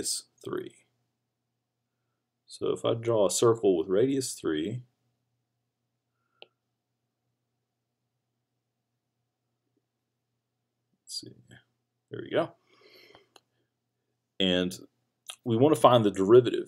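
A man speaks calmly, close to a microphone, with pauses.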